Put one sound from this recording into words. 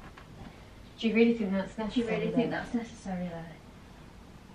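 A young woman talks on a phone nearby.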